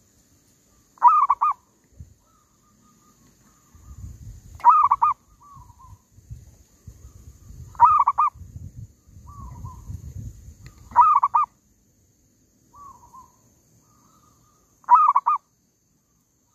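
A bird squawks loudly in short repeated bursts.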